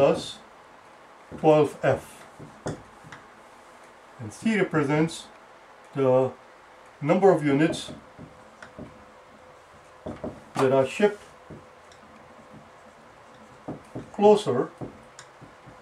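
An older man speaks calmly in short phrases, close by.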